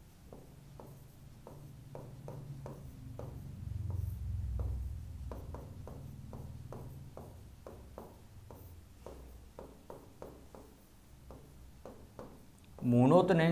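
A marker squeaks and taps as it writes on a board.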